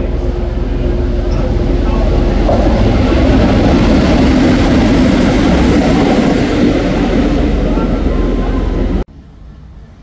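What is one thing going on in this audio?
A diesel locomotive roars loudly as it passes close by.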